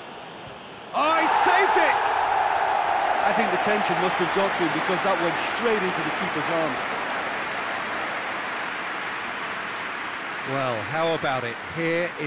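A large crowd suddenly roars loudly.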